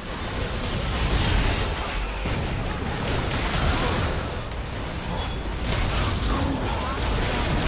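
Magical spell effects whoosh, crackle and burst in a hectic battle.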